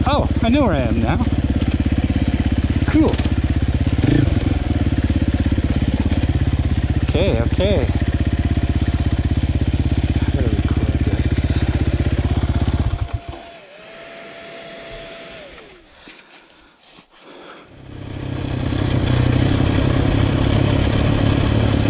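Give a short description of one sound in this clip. A dirt bike engine revs with a loud, rough drone close by.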